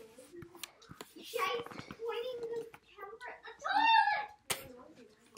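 A young girl laughs close by.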